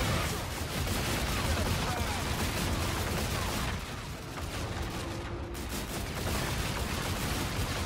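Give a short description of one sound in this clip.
Explosions burst.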